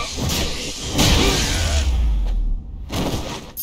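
A fiery blast bursts with a deep rumble.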